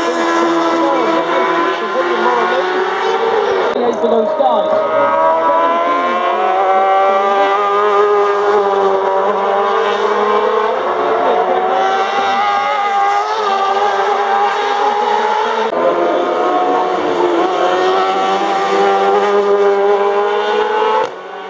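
Racing sidecar engines roar loudly as they speed past, rising and falling in pitch.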